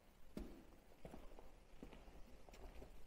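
Footsteps thud on a hard floor close by.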